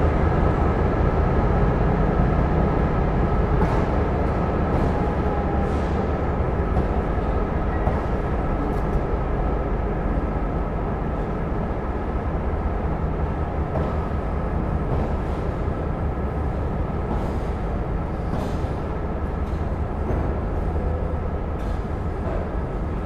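A train rumbles and rattles steadily as it rolls along the platform.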